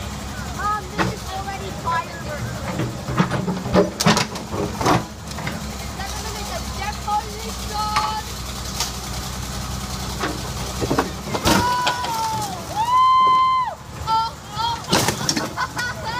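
Metal crunches and scrapes as a wrecked car is crushed.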